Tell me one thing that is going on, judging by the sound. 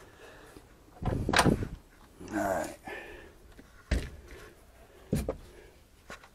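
Metal tools knock and clink as they are handled close by.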